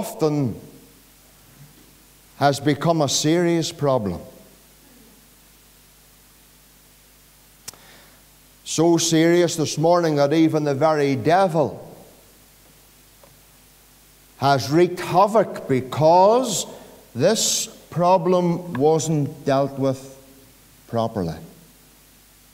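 A middle-aged man preaches with animation into a microphone, pausing between phrases, in a reverberant hall.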